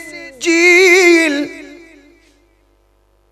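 A young man sings a long, wavering note loudly into a microphone, with echo.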